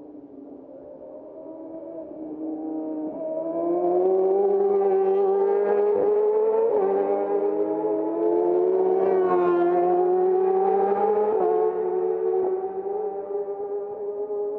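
Another motorcycle engine approaches, roaring louder and higher as it nears.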